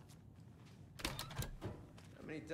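A heavy door clanks open.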